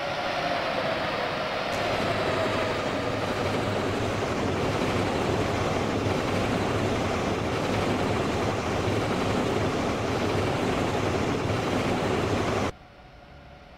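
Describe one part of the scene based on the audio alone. A train rumbles loudly along the tracks.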